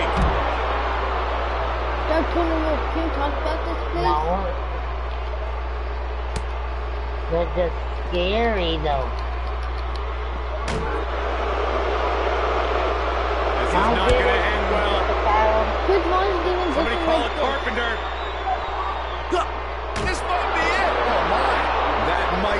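A crowd cheers steadily.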